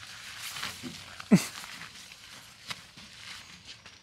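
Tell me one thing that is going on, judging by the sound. Nylon tent fabric rustles as a bag is pushed inside.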